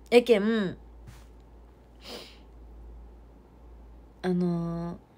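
A young woman speaks close by in a soft, sing-song voice.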